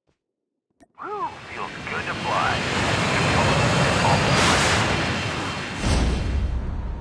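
A rocket-like launch roars loudly and keeps rushing like wind.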